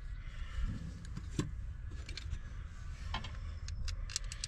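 Metal parts click and rattle as a rod is unhooked from a hinged flap.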